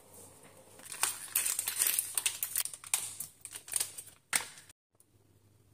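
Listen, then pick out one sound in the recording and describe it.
A paper packet crinkles as it is torn open.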